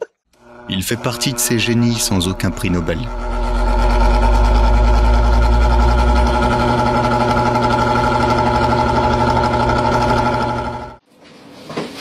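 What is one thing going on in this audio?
An electric fan whirs steadily.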